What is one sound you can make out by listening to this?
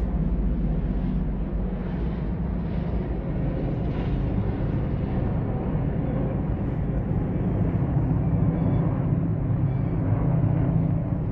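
Helicopter rotors thump steadily in the distance.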